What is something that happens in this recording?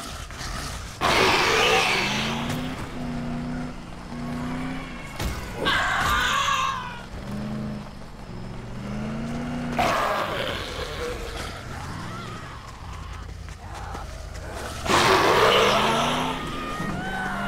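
A car crashes into bodies with heavy, crunching thuds.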